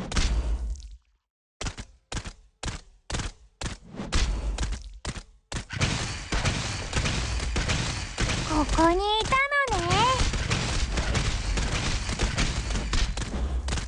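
Game combat sounds of hits and blasts clash rapidly.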